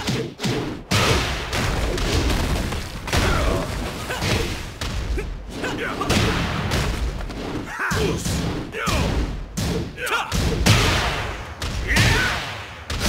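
Punches and kicks land with sharp, heavy hits in quick succession.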